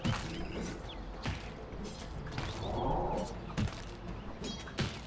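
Fantasy battle sound effects clash and thud in sharp bursts.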